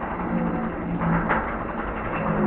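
Starting trap gates clang open.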